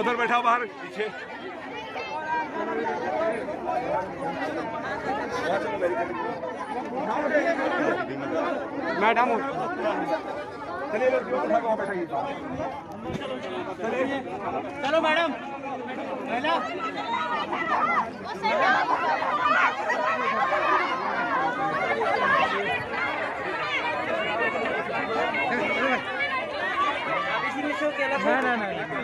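A large crowd of men and women talks and shouts outdoors.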